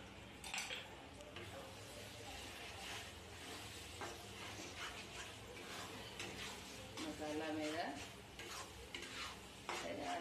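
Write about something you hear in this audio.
Food sizzles softly in hot oil.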